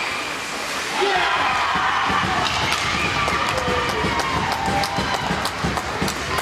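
A crowd of spectators cheers and shouts in an echoing ice rink.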